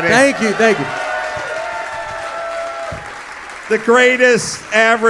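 A man speaks loudly and animatedly through a microphone.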